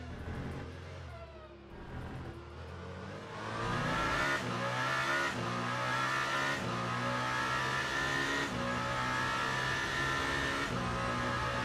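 A racing car engine roars loudly, climbing in pitch and dropping briefly with each gear change.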